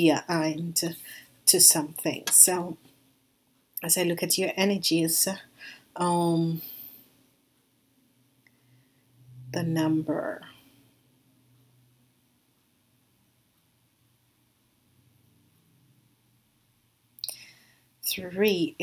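A woman speaks close to a microphone, expressively and with pauses.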